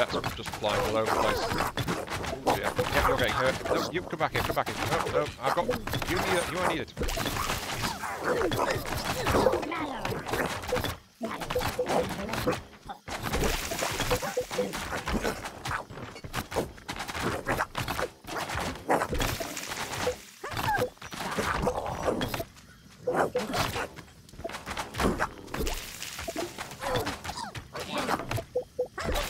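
Weapons clash and strike in a game battle.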